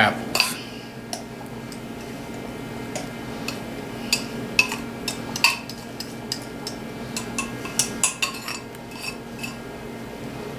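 A knife scrapes and taps against a glass bowl.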